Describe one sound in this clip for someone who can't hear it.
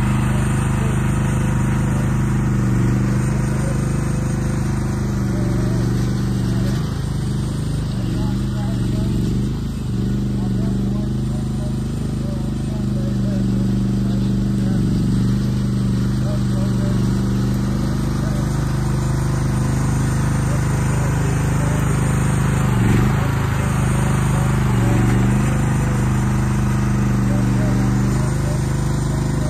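A small diesel excavator engine runs steadily nearby, rising and falling as it works.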